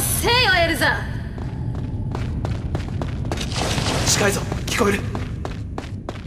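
Footsteps run quickly over stone.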